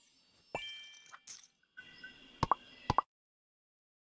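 Short bright game chimes and pops play in quick bursts.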